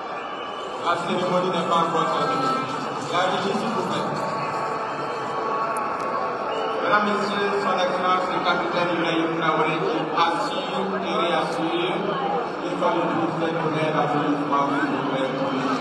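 A large crowd talks and cheers, heard through a loudspeaker.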